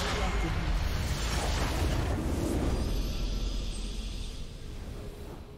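A loud magical blast crackles and booms, then fades away.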